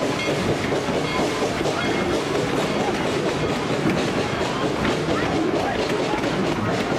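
A crowd of passengers chatters excitedly.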